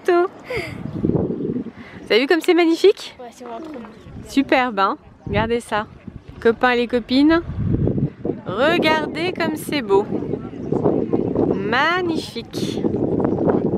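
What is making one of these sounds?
Young children talk excitedly close by.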